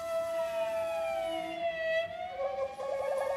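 A violin plays a sliding note in an echoing hall.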